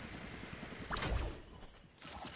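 A heavy thud lands once.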